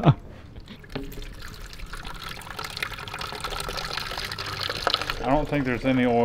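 Oil pours and trickles into a plastic tub.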